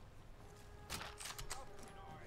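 A rifle shot cracks once.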